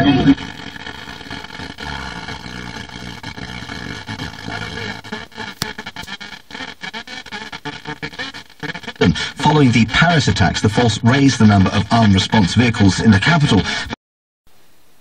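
A car radio plays loudly through its speakers.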